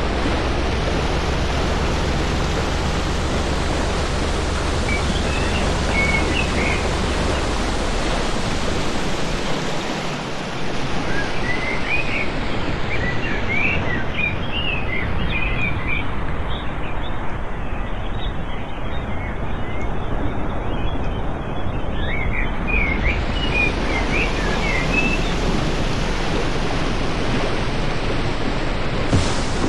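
Water splashes and rushes against a speeding boat's hull.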